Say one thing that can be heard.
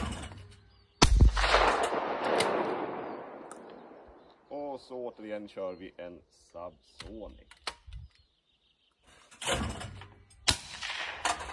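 A shotgun fires loudly, with the blast echoing across open country.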